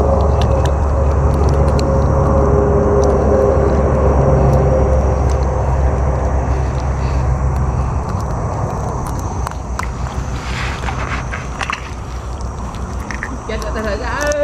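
Water splashes and swishes as a hand moves through it.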